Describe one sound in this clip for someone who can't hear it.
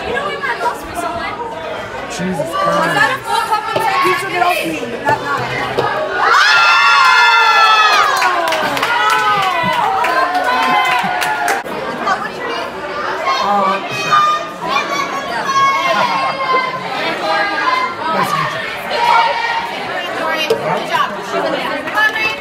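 A lively crowd chatters and shouts loudly all around.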